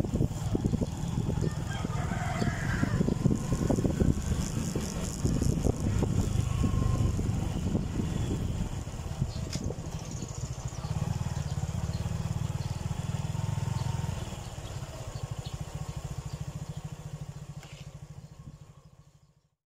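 A motorcycle engine putters steadily at low speed close by, then dies away.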